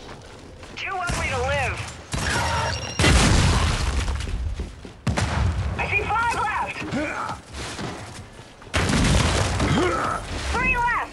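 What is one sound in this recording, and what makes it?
Guns fire in loud, rattling bursts.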